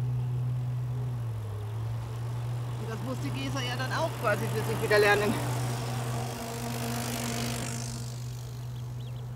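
Bicycles roll past close by on pavement.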